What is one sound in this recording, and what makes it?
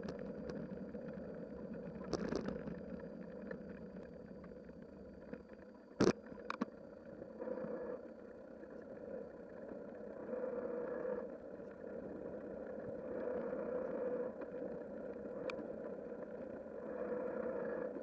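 Wind rumbles against a moving vehicle.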